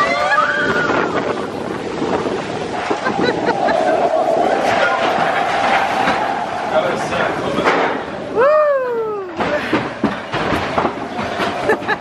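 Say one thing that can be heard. A bobsled roller coaster car rattles and rumbles as it races along a steel track.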